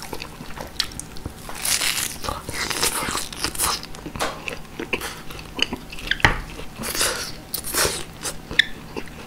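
Crisp meat skin crunches and tears between teeth.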